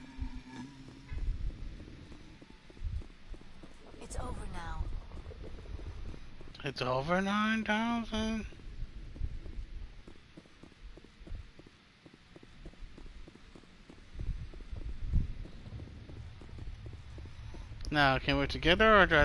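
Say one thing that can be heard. Boots thud on a hard floor in quick steps.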